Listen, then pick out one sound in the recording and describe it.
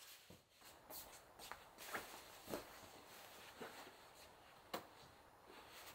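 Pillows rustle and thump as they are moved.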